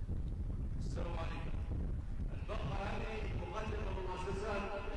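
A man speaks with a raised voice through a microphone.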